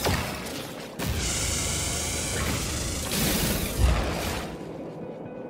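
A mining beam hums and hisses as it fires.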